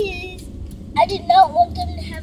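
A little girl speaks nearby in a high voice.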